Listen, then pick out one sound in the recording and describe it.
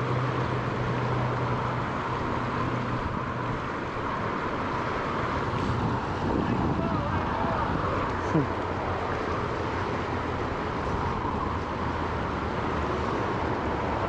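A shallow river rushes steadily over rocks close by.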